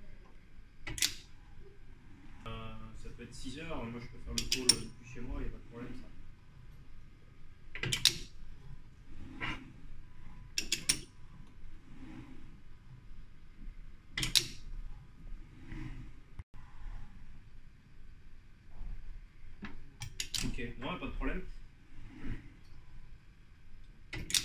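Metal rings clink as a robotic gripper sets them down.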